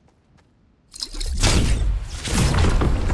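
A loud whooshing burst erupts.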